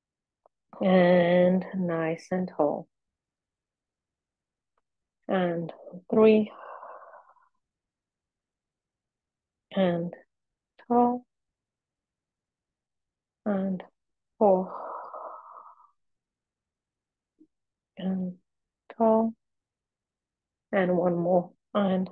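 A woman speaks calmly in short phrases, close to a microphone, with pauses between them.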